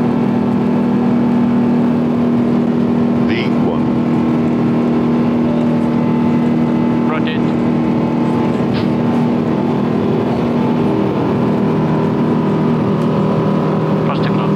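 Jet engines hum with a steady, loud drone.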